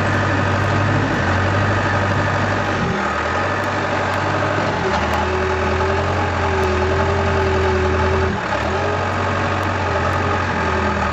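Steel tracks of a crawler dozer clank and squeal as it moves.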